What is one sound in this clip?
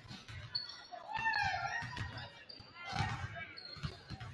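Young players call out to each other.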